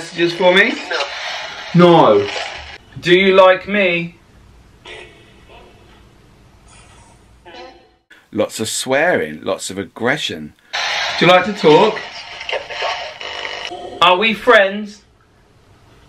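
A handheld radio crackles with loud static and broken voices.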